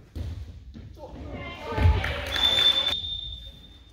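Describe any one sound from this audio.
Spectators cheer and shout.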